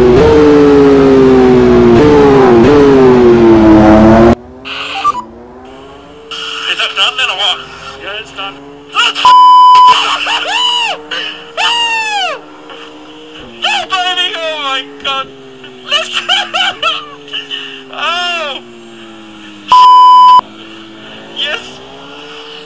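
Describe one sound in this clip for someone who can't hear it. A racing car engine roars and changes pitch as the car accelerates and slows through corners.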